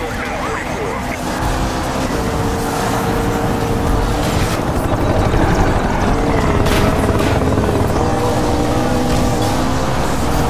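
A sports car engine roars at high speed.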